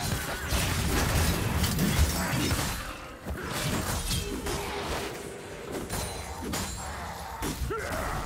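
Game spell effects crackle and burst in a rapid fight.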